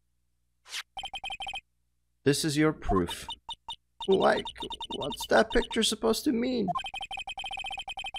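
Short electronic blips tick rapidly, one after another.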